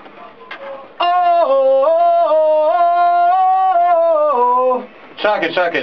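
A man sings loudly into a nearby microphone, holding long notes.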